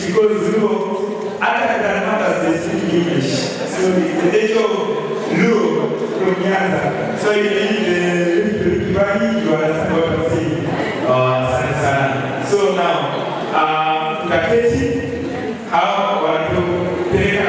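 A man sings loudly into a microphone.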